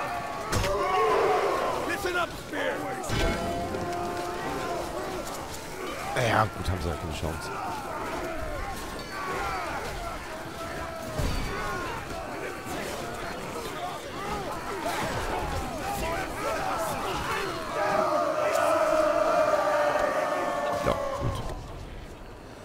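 Swords and spears clash and clang in a melee fight.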